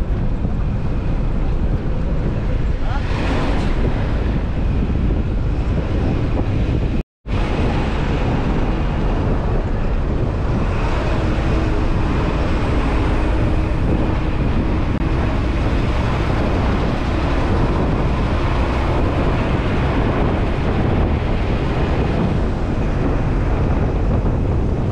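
A vehicle's engine rumbles steadily from inside the cab.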